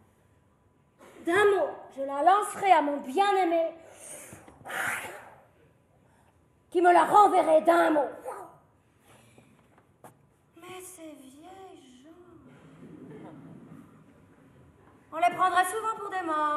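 A young woman sings in a strong operatic voice, in a large echoing hall.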